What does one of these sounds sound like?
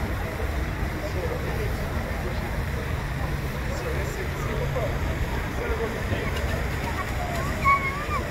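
A crowd of people chatters in the distance outdoors.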